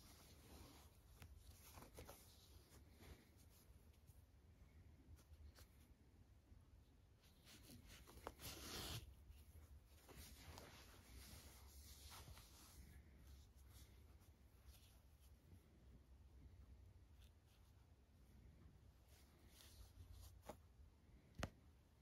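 Yarn rustles softly as it is pulled through a knitted toy.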